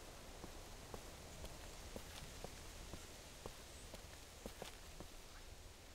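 Footsteps walk slowly across pavement.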